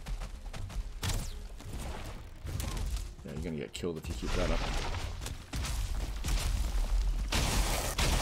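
Weapons swing and thud in a fight with a large beast.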